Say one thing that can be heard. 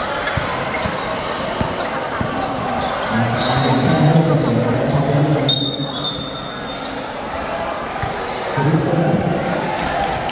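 A crowd of players and onlookers chatter and call out in an echoing covered court.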